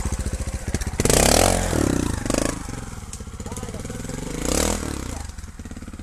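A motorbike engine revs up loudly in short bursts.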